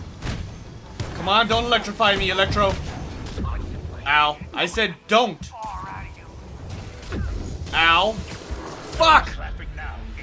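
Energy blasts burst with sharp bangs.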